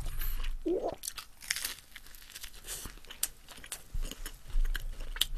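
A man crunches on toast.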